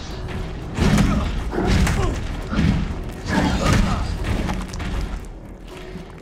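A monster growls and snarls close by.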